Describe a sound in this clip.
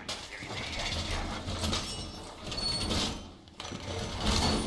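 A heavy metal panel clanks and rattles into place.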